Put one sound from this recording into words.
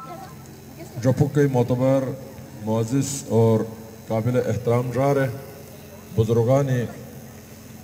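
A crowd chants in reply.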